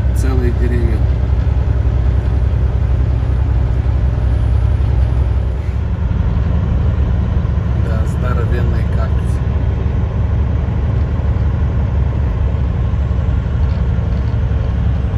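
A car engine hums and tyres roar steadily on the road, heard from inside the car.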